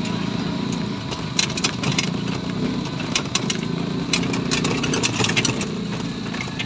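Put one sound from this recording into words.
Loose panels rattle and clatter as the vehicle bumps along.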